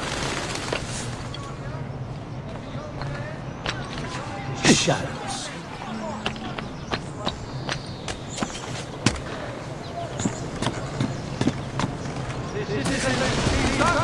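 Footsteps tap across roof tiles.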